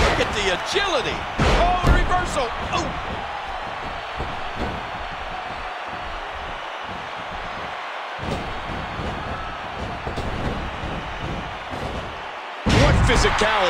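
Bodies thud onto a wrestling ring's canvas.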